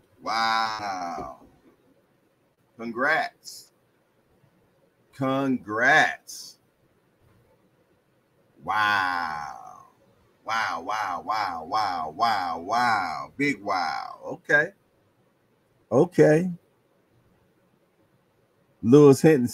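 A middle-aged man speaks with animation into a close microphone, in bursts with pauses.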